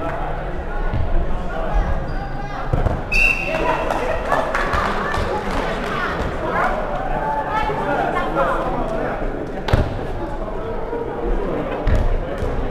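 A ball thuds against the floor and walls.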